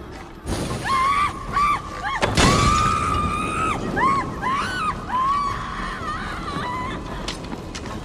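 A man screams in pain.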